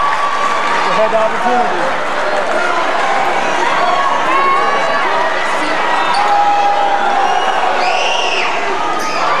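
A crowd of people chatter and call out in a large echoing gym.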